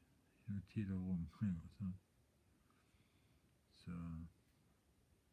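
A man speaks quietly and close by, in short phrases.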